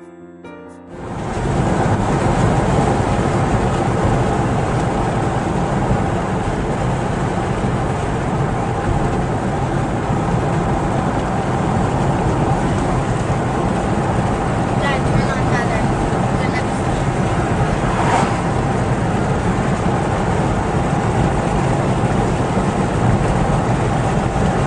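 A car engine hums steadily with tyre noise on the road, heard from inside the car.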